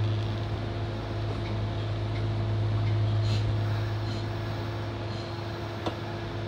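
A train's engine hums steadily while idling.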